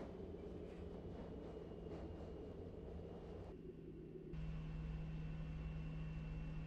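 An electric train's motor hums as the train rolls slowly.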